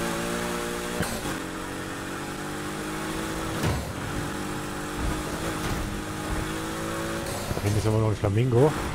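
A car exhaust pops and crackles with backfires.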